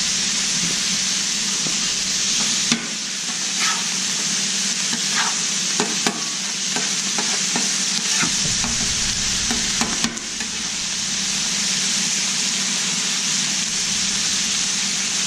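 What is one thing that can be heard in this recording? Meat sizzles loudly on a hot griddle.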